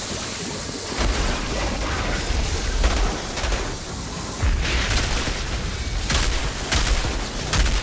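A gun fires rapid bursts of loud shots.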